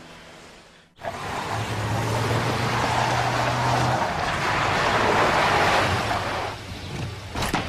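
A car drives up and stops.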